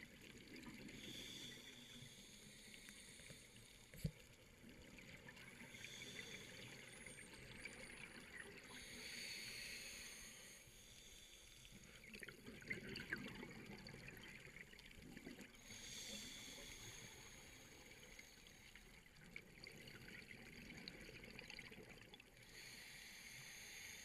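Scuba regulator bubbles gurgle and rumble up close underwater.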